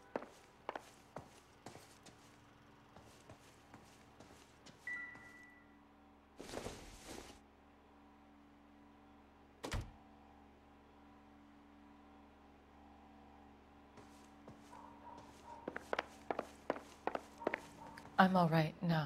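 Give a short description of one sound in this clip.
Footsteps tap across a floor.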